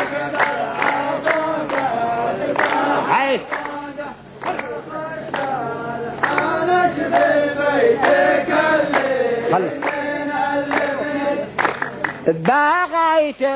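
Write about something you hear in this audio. A group of men sing and chant together in a line.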